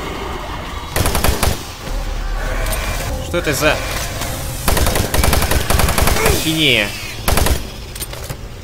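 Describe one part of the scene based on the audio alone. A shotgun fires loudly several times.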